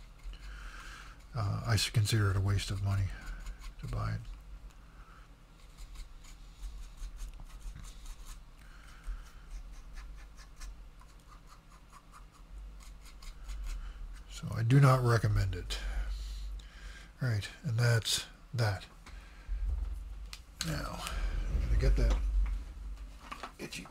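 Small plastic parts tap and click as they are handled.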